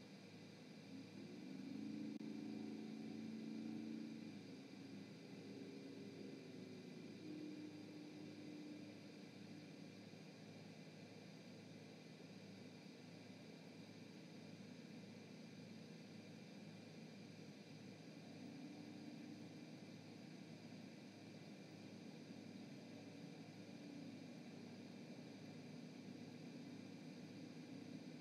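An owl hoots in low, deep notes.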